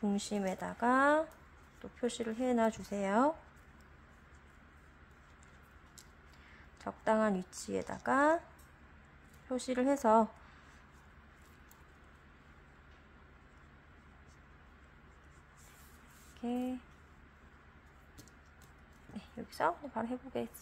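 Yarn rustles softly as it is pulled through a crochet hook.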